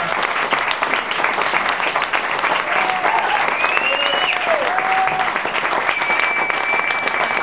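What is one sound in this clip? Hands clap in loud, steady applause.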